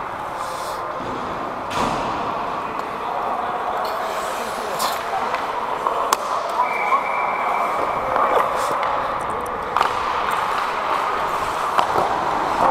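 Ice skates scrape and hiss across the ice close by.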